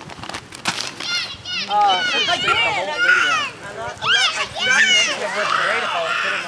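Children shout and squeal excitedly outdoors.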